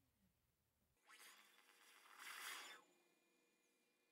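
A game console plays its startup chime with a rising whoosh.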